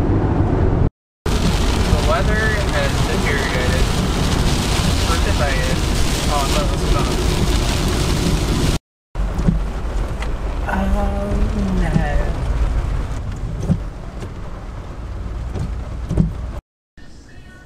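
Heavy rain drums on a car's windshield.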